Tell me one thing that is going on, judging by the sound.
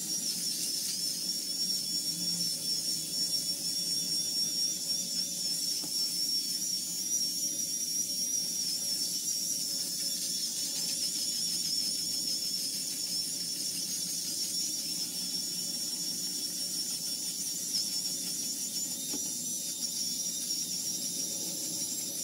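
An electric shaver buzzes steadily close by.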